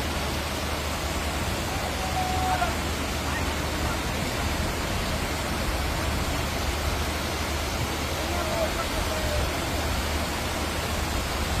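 A car drives through deep water, splashing.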